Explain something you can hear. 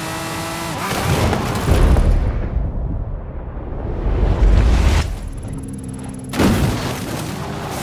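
A car crashes heavily into bushes with loud thuds.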